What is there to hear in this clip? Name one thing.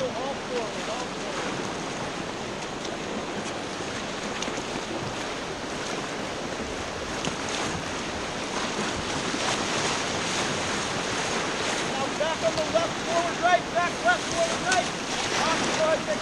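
Paddles splash and dig into the water.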